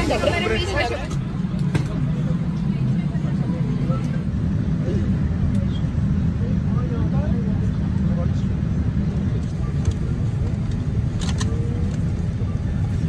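A low, steady hum of an aircraft cabin drones on.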